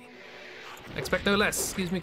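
A magic spell bursts with a whooshing blast.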